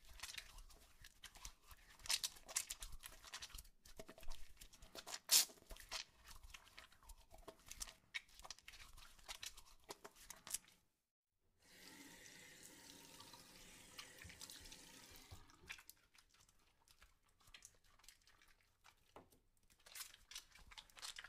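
Raindrops patter and plink on the surface of water.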